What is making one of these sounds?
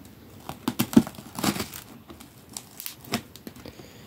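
Scissors scrape and tear through packing tape on a cardboard box.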